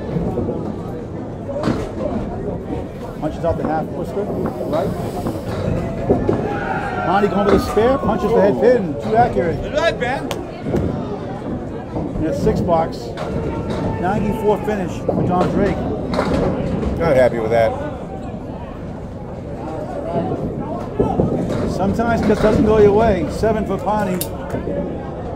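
Bowling balls rumble down lanes.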